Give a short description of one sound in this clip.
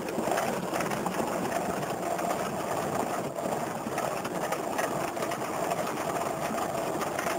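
Wheels rumble and bump over a grass strip.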